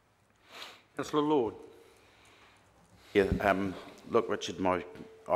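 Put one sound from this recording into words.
A man speaks through a microphone in a room with a slight echo.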